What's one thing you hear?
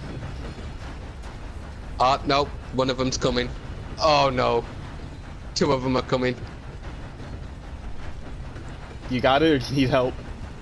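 A steam train rumbles along the tracks.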